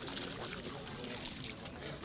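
Water splashes from a watering can onto soil.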